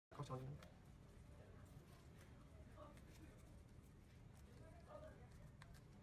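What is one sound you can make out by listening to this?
Paper crinkles and rustles as it is folded by hand.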